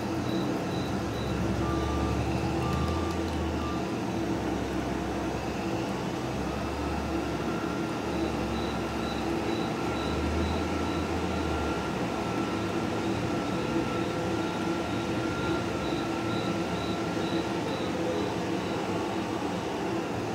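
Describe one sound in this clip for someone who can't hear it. A tractor engine hums steadily as it drives.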